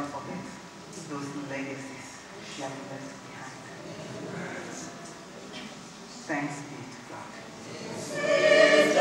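A woman speaks calmly into a microphone through a loudspeaker.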